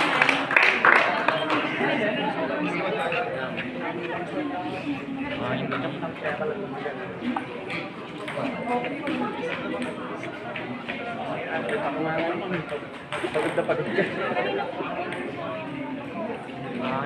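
A ping-pong ball clicks against paddles and a table in quick rallies.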